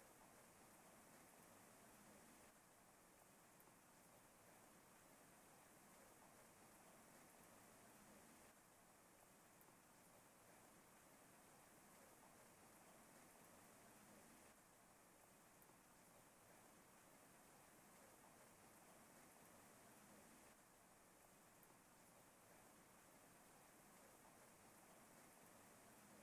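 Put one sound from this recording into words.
Rain falls steadily and softly.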